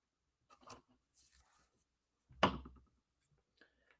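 Paper cards slide and tap on a table.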